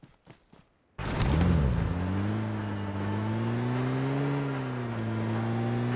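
A car engine starts up and hums steadily.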